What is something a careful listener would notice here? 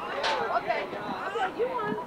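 A woman talks gently to a toddler.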